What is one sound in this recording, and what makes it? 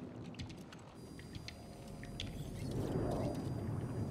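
A small robot beeps and chirps in short electronic tones.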